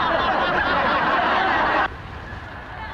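A group of men laugh loudly together.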